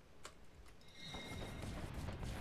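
A magic spell crackles and whooshes loudly.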